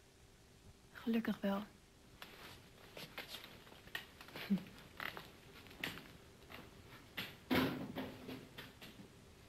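A young woman speaks and laughs softly close by.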